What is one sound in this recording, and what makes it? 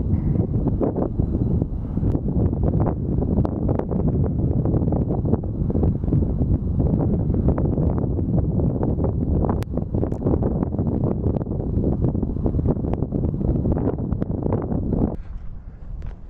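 Strong wind blows outdoors, buffeting loudly.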